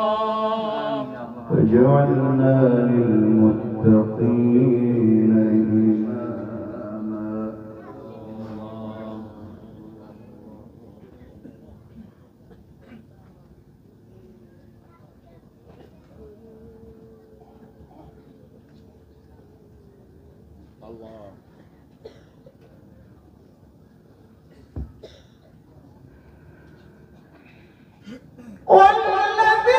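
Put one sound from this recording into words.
A man sings a long, wavering melodic phrase through a microphone, with a loud echo.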